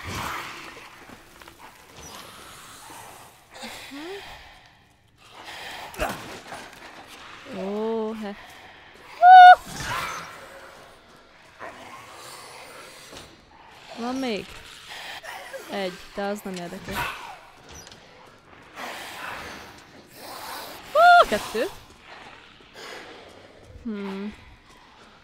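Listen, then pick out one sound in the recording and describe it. A young woman talks with animation close to a microphone, her voice rising and falling.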